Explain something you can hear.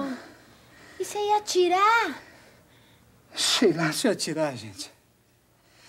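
A young woman speaks close by in an upset, pleading voice.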